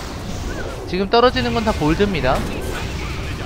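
A loud magical blast bursts and rings out.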